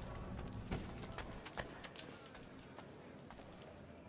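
Bare feet patter on stone steps.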